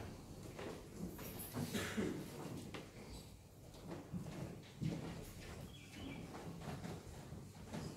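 Footsteps shuffle softly across a floor in a quiet, echoing room.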